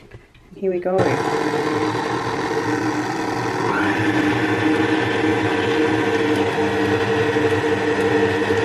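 An electric stand mixer whirs steadily at a low speed.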